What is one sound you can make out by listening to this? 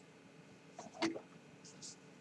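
A board is laid down on a table.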